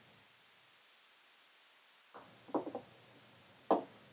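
A pen taps lightly as it is set down on a hard surface.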